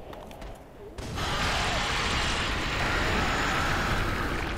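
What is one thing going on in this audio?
A fireball bursts with a loud roar.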